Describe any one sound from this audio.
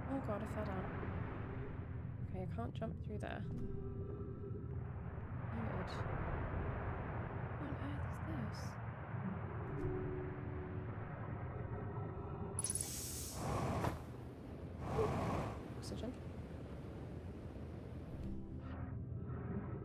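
A young woman talks calmly into a close microphone.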